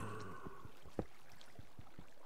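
A pickaxe chips at stone.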